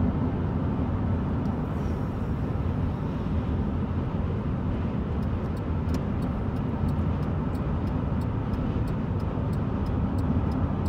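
Road noise rumbles inside a car driving at highway speed.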